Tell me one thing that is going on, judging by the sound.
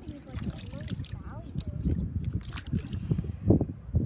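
A net swishes through shallow water.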